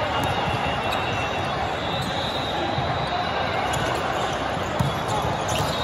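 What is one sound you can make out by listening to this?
A busy crowd murmurs and chatters throughout a large echoing hall.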